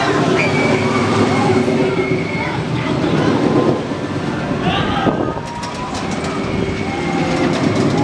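A roller coaster train rumbles along its track.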